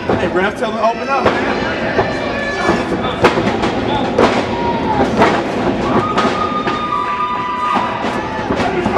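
A small crowd shouts and cheers in an echoing hall.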